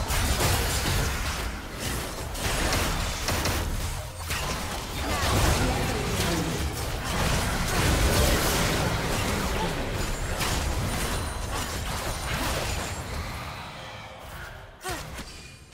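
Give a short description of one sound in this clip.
Game spells crackle and blast in a busy fight.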